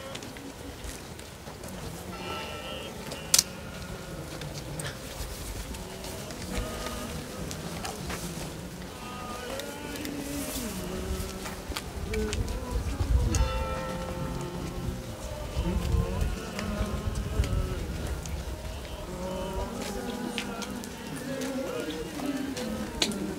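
Footsteps shuffle on a paved road.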